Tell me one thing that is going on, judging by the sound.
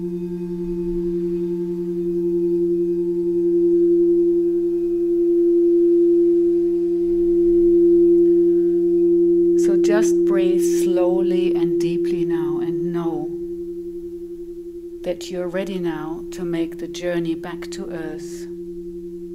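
Crystal singing bowls ring with a steady, humming tone.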